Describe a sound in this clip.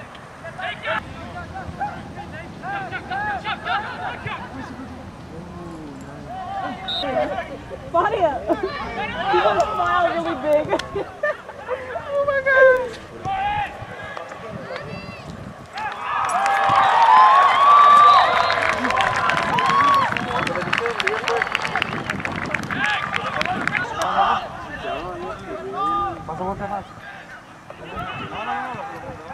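Players shout to each other across an open field.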